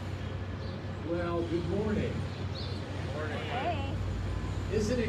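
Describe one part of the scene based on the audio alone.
A man speaks into a microphone through a loudspeaker outdoors.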